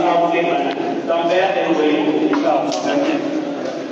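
A man speaks into a microphone with a steady, calm voice.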